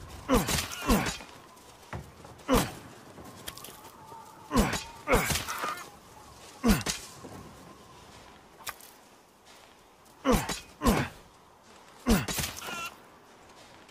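A chicken clucks and squawks nearby.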